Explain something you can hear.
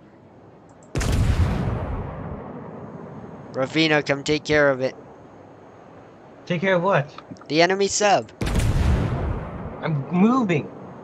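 Heavy naval guns boom, followed by a long rumbling echo.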